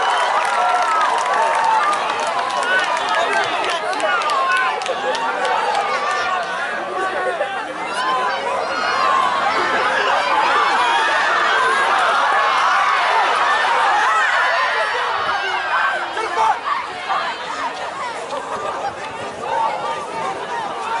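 Young men on the field call out to one another.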